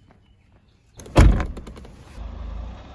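A car engine starts with a loud burst.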